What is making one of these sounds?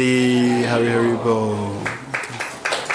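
A young man sings through a microphone.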